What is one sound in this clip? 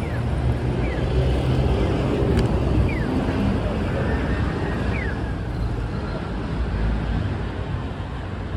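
Low wind rumbles outdoors.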